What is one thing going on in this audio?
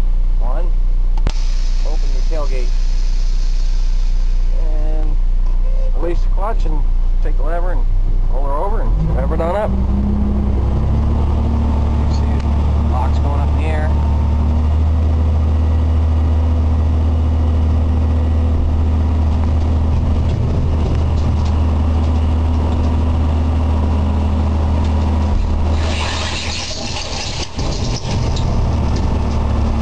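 A heavy diesel engine rumbles steadily up close.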